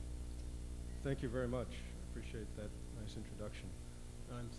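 An elderly man speaks into a microphone in a large room.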